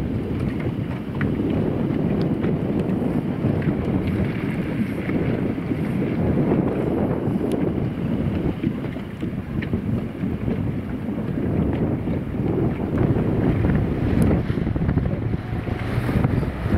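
Water splashes against a boat hull.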